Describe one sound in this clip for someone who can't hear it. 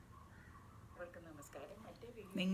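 A middle-aged woman speaks softly close by.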